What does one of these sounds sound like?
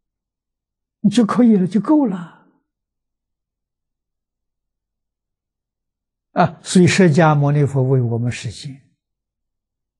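An elderly man speaks calmly and warmly into a microphone, with pauses between phrases.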